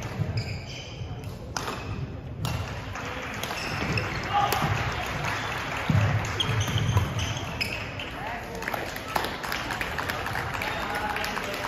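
Badminton rackets strike a shuttlecock in a rally.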